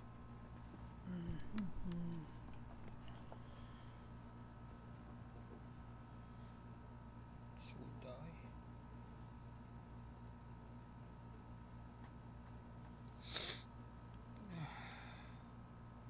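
A young man speaks briefly and quietly close to a microphone.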